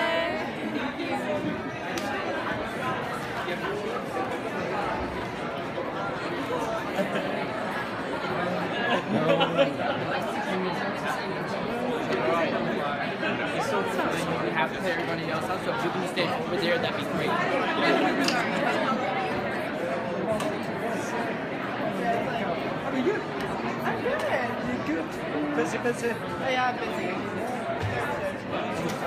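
A crowd of people chatters loudly all around in a large echoing room.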